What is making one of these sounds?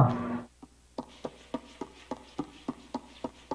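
Light footsteps patter on a wooden floor.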